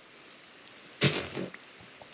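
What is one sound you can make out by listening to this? A block of dirt breaks with a short crunch.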